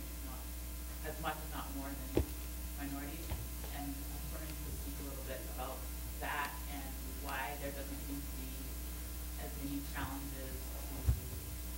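A young woman speaks calmly into a microphone.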